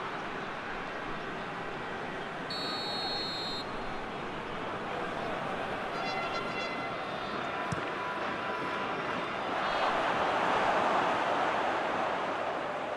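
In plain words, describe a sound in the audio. A large crowd roars steadily in a stadium, swelling louder near the end.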